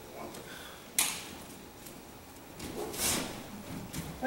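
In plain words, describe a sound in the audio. A body falls and thuds onto a padded mat.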